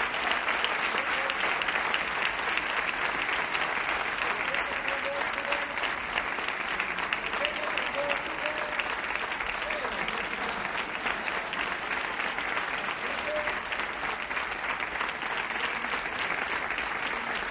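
A large audience applauds outdoors.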